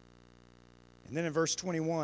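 A man speaks calmly into a microphone over a loudspeaker.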